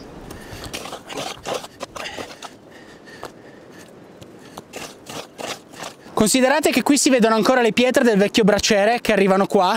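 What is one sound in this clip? A shovel scrapes and digs through ash and stones.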